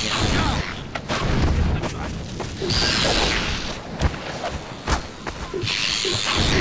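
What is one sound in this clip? Insect-like creatures screech and chitter nearby.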